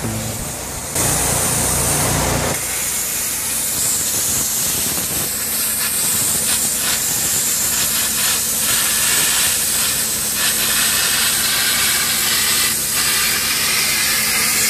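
A plasma torch hisses and crackles steadily as it cuts through metal.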